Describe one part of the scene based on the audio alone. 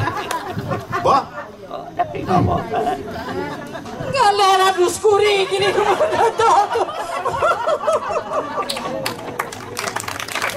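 A woman speaks and sings loudly and theatrically, heard from a distance.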